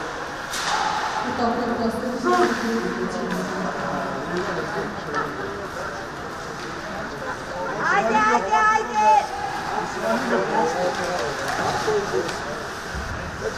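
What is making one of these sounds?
Players shout to each other across a large echoing rink.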